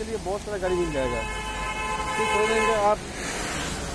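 A vehicle horn honks.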